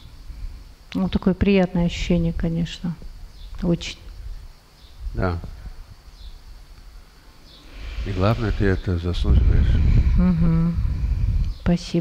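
A middle-aged woman speaks calmly into a close microphone.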